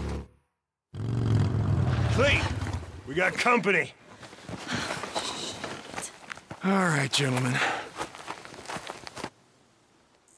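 A man speaks gruffly nearby.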